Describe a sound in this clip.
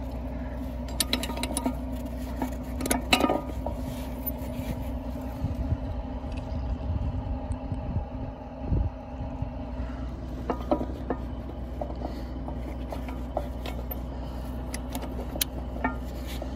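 Small metal parts clink and tap close by.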